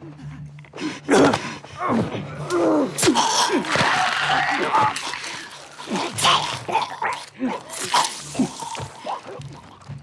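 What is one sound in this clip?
Heavy blows and thuds land in a close struggle.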